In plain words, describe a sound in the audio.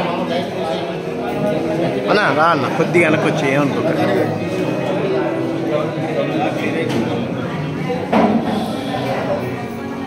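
A crowd of men and women chatter loudly close by.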